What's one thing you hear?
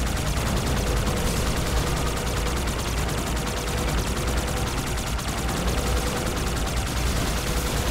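A vehicle engine hums steadily as it hovers and flies.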